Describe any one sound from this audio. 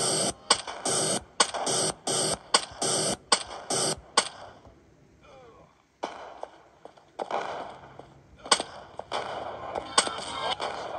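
A video game gun fires in quick, sharp bursts.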